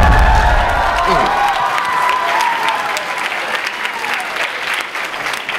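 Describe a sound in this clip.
A large audience cheers loudly in an echoing hall.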